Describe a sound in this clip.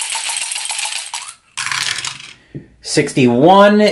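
A die clatters into a dice tray.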